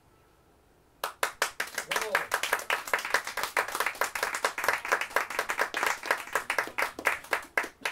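An acoustic guitar is strummed quickly and rhythmically.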